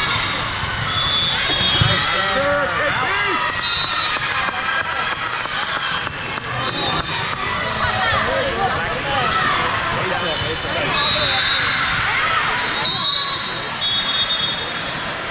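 Shoes squeak sharply on a hard court floor.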